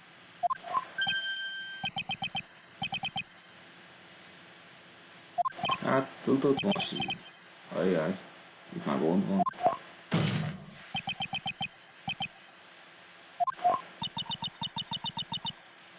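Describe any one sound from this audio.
Short electronic blips tick rapidly in bursts.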